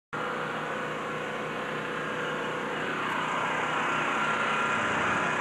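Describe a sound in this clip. A car engine runs loudly and steadily close by.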